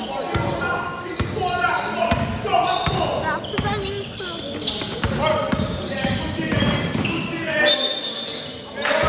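A basketball bounces on a hard court in a large echoing hall.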